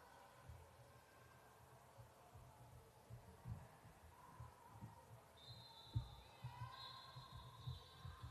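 A basketball bounces with dull thuds in an echoing hall.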